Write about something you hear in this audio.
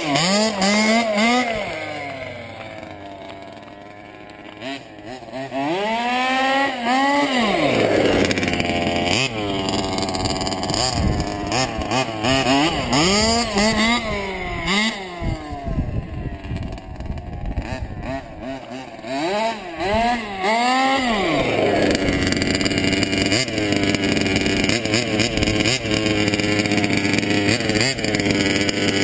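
A small electric motor whines, revving up and down in quick high-pitched sweeps.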